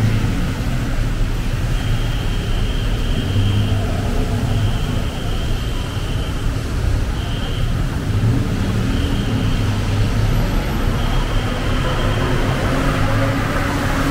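Tyres hiss on the wet road.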